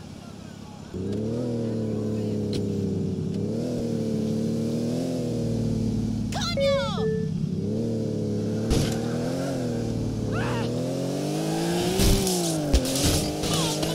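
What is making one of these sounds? A car engine starts and revs loudly, rising and falling.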